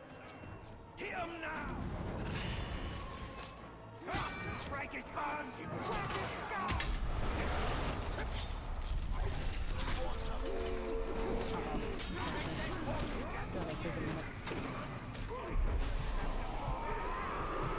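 Swords clash and strike in a fast fight.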